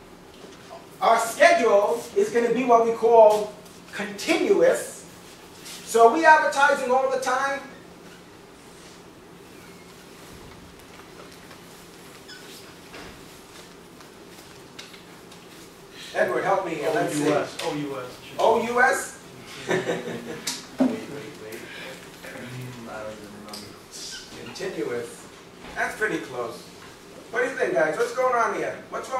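A man speaks calmly and clearly in a room with some echo, pausing now and then.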